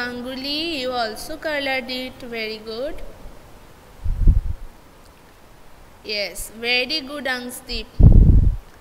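A young woman speaks calmly and clearly into a close microphone.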